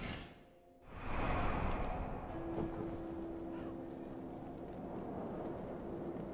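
Fire crackles and roars steadily.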